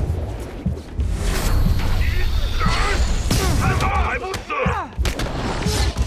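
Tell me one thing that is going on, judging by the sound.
Heavy punches and kicks thud in a scuffle.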